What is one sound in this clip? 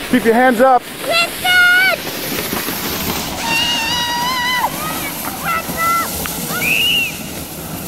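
A plastic sled scrapes and hisses over snow.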